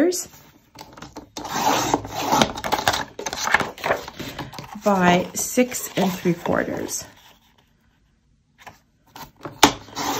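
A paper trimmer blade slides along, slicing through paper.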